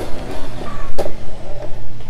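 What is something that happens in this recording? A car thuds hard into a barrier.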